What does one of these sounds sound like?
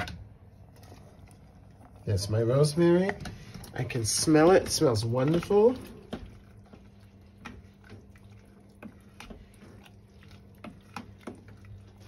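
A spoon stirs beans in a metal pot with soft scrapes and clinks.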